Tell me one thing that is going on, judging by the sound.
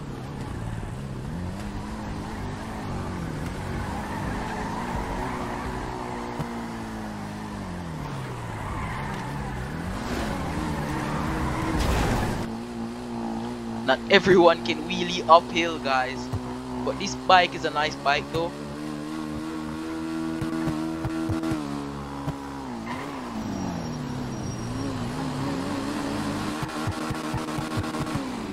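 A motorcycle engine revs.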